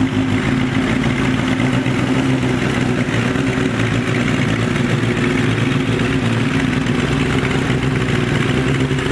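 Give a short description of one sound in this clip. A racing motorcycle engine idles loudly with a rough, throbbing rumble, revving slightly.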